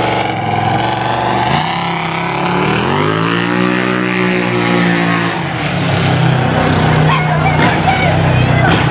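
A pickup truck engine rumbles as the truck rolls slowly past.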